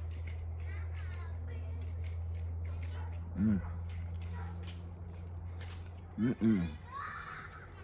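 A man chews food with his mouth closed.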